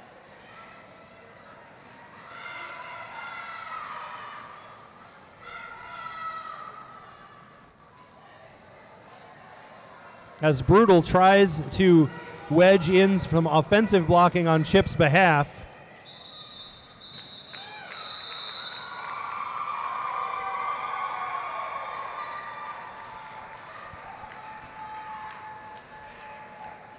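Roller skates roll and scrape across a hard floor in a large echoing hall.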